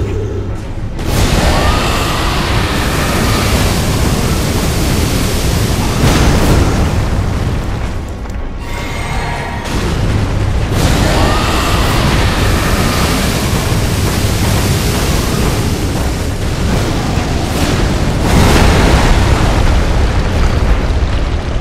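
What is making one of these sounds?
Magic blasts burst with loud roaring whooshes.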